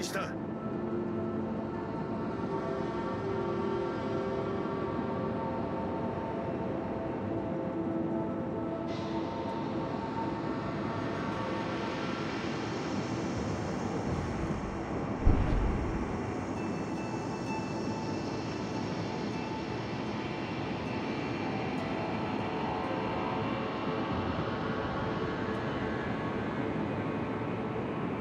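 Water rushes and splashes along a ship's hull as it moves through the sea.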